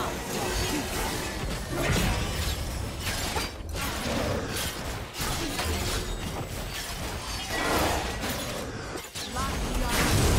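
Magic spells whoosh and crackle in quick bursts during a fight.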